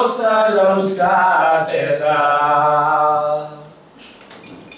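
A man sings loudly into a microphone, close by.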